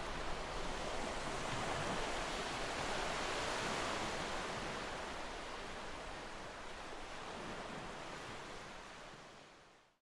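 Gentle sea waves wash onto a sandy shore and slowly fade away.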